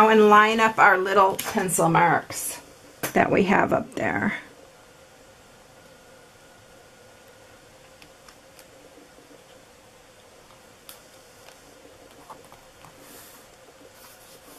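Paper rustles and taps softly as a card is handled.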